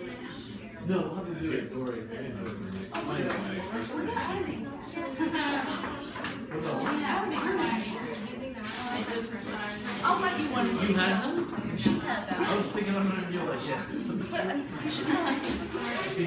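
Several people talk over one another nearby.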